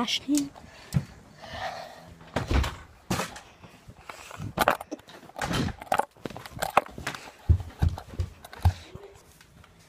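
Knocks and bumps of a phone being handled.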